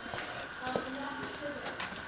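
Footsteps tread on a hard floor.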